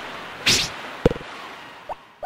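A bobber plops into water.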